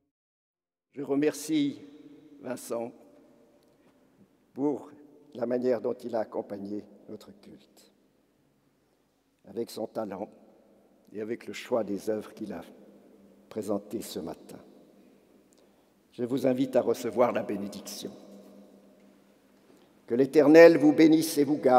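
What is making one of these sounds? An elderly man speaks calmly into a microphone, echoing in a large hall.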